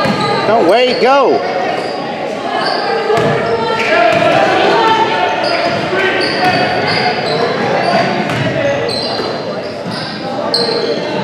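Players and spectators shout and call out.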